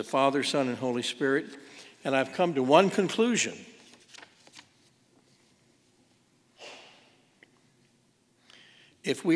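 An elderly man speaks slowly and deliberately through a microphone in a reverberant room.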